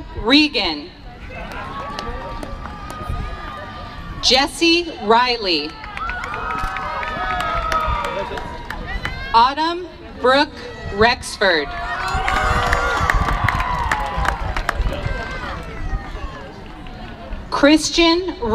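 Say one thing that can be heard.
A crowd cheers and shouts in bursts.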